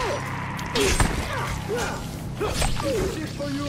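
A blunt weapon strikes a body with heavy thuds.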